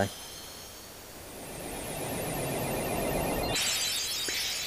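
A deep rushing whoosh swells and fades.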